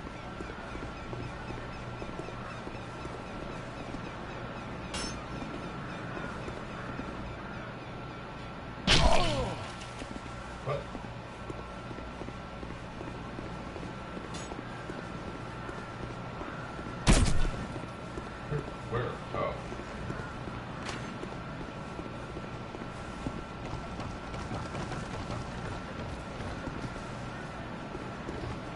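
Footsteps patter quickly on stone and grass.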